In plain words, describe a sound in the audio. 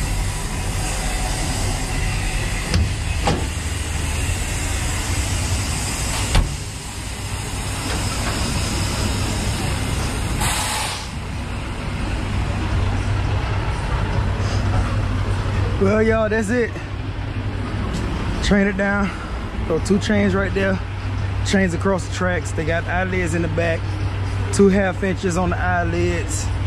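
The diesel engine of a tracked drilling rig runs with a low, steady rumble.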